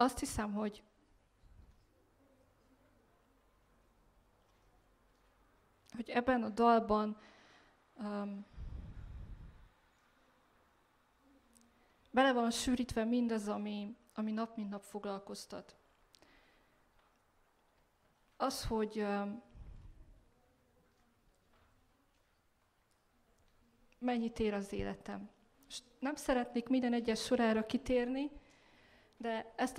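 A young woman speaks calmly into a microphone over a loudspeaker, pausing between phrases.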